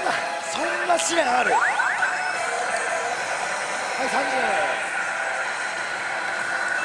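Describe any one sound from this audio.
A slot machine plays loud electronic music and jingles.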